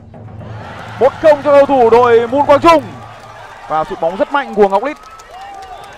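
Young men shout and cheer excitedly nearby after a goal.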